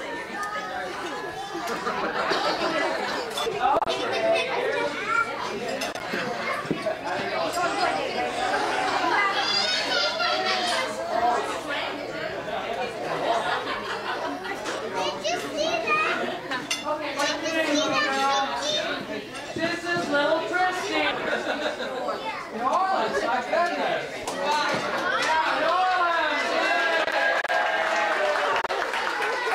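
Cutlery and plates clink on tables.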